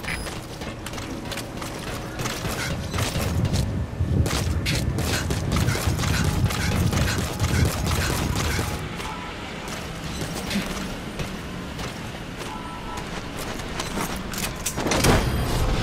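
Footsteps patter quickly on a metal deck.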